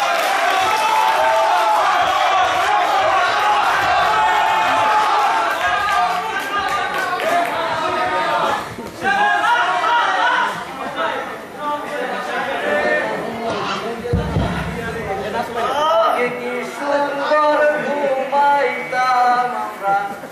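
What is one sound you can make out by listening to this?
A man sings loudly through a microphone and loudspeaker.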